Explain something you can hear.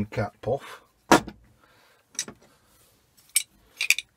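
A small metal part knocks down onto a soft surface.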